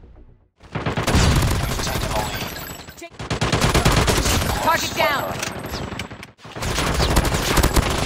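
Rapid gunfire bursts out in quick volleys.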